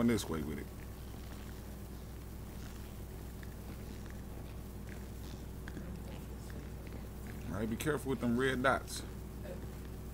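Footsteps tread softly on a hard floor.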